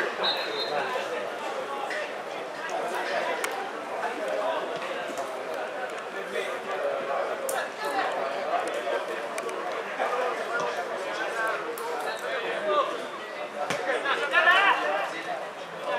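Men shout and call to each other outdoors across an open field.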